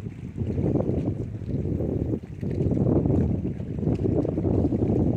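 Wind blusters loudly across open water.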